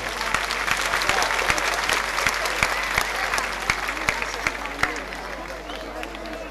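An audience claps loudly in a steady rhythm, slowly fading.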